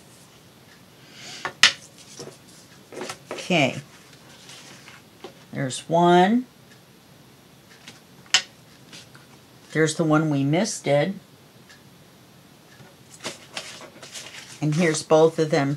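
Sheets of card rustle and slide as they are handled.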